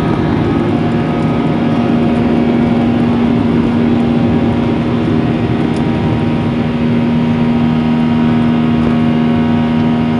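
Wheels rumble on a runway.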